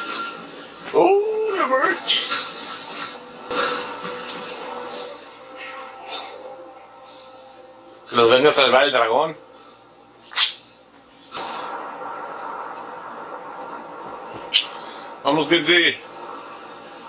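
A man exclaims and talks with animation close by.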